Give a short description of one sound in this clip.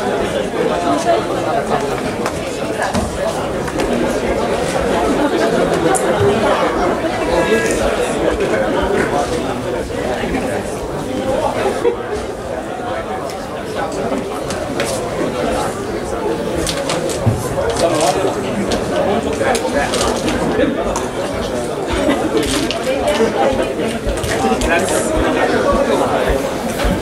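Grapplers scuffle and thump on the mats.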